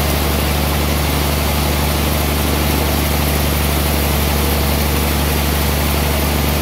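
A large band saw runs with a loud, steady low hum.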